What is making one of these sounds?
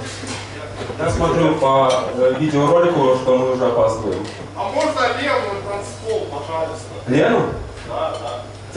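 A young man sings through a microphone and loudspeakers.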